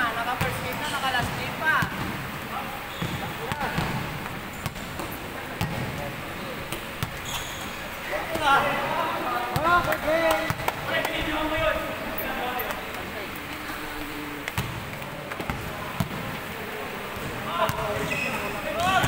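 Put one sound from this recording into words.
A basketball bounces on a hard court, echoing in a large hall.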